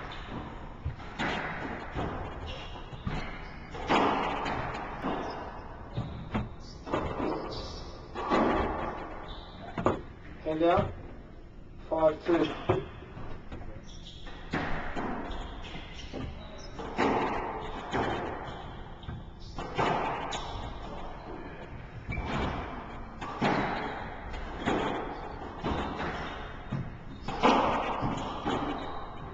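A squash ball smacks against racquets and walls in an echoing court.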